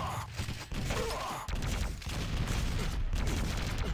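A rocket launches with a loud whoosh.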